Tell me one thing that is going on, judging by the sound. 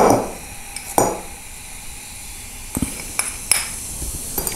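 A metal spoon taps and clinks against a small ceramic dish.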